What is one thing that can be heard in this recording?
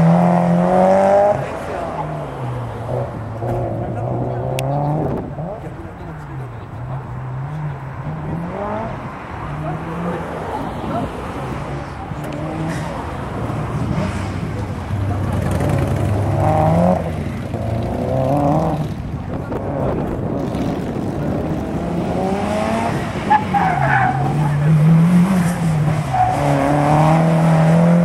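Tyres squeal on pavement through the corners.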